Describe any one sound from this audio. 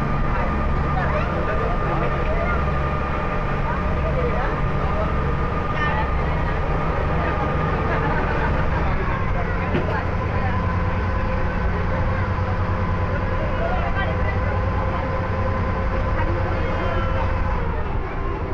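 A crowd of people chatter in the distance.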